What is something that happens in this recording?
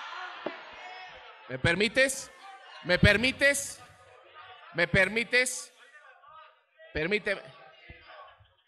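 A man talks with animation through a microphone, heard over loudspeakers in a large hall.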